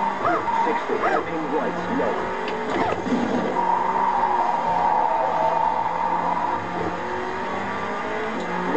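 A car engine hums steadily as it drives.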